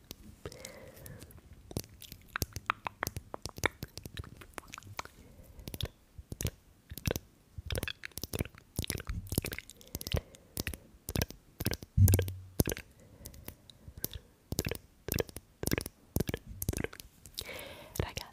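A brush taps and scratches against a microphone up close.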